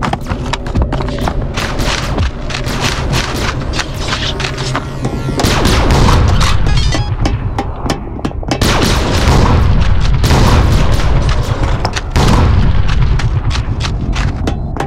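Shotgun blasts fire again and again.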